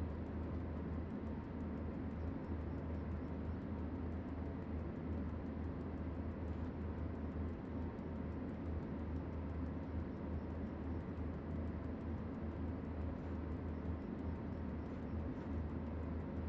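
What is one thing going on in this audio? A locomotive's electric motors hum low and steady while the train runs.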